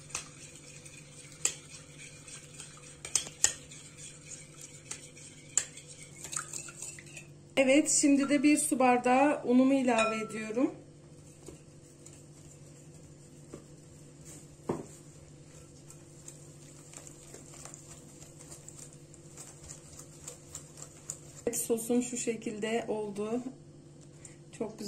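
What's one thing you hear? A metal whisk clinks and scrapes against a glass bowl while stirring thick batter.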